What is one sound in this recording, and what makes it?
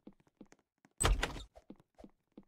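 A door opens with a thud.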